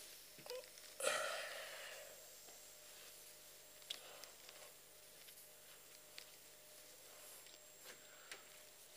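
An eraser rubs across a chalkboard.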